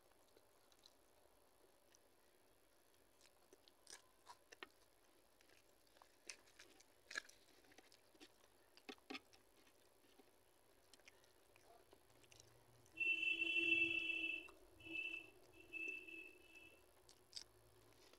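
A woman chews food.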